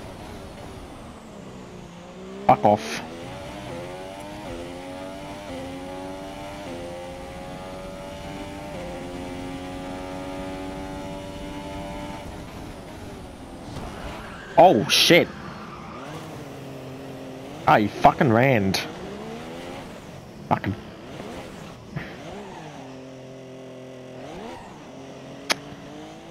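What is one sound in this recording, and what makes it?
A racing car engine whines, rising and falling in pitch as it shifts gears.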